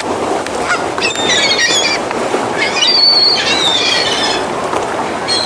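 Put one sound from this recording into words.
A bird chirps nearby.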